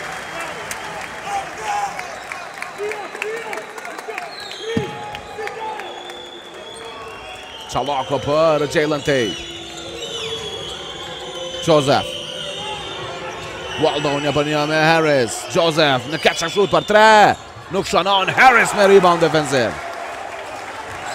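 A crowd murmurs and chants in a large echoing hall.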